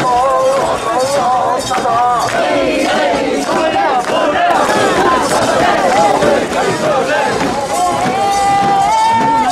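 A large crowd of men and women chants and shouts loudly outdoors.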